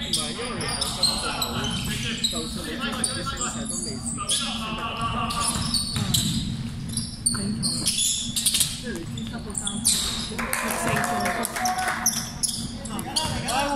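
Sneakers squeak sharply on a hard court, echoing in a large hall.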